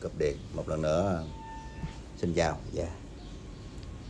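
A young man speaks close to the microphone, with animation.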